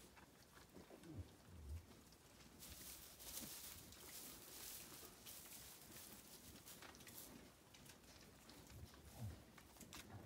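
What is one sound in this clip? A sheep gives low, soft bleats nearby.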